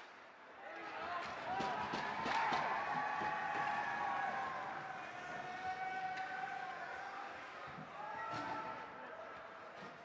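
A crowd murmurs and cheers in an echoing rink.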